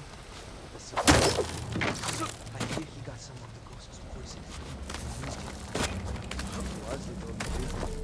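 Hands grab and scrape against rock in quick thuds.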